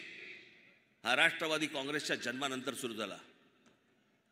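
A man speaks forcefully through loudspeakers in a large open space.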